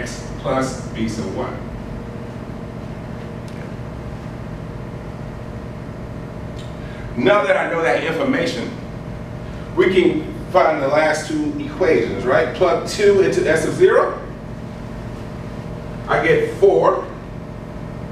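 A man lectures nearby, speaking calmly with pauses.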